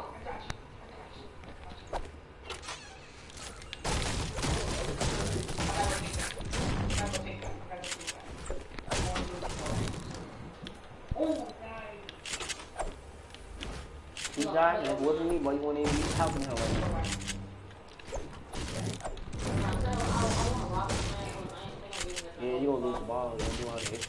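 A video game character hacks and builds with loud clattering thuds.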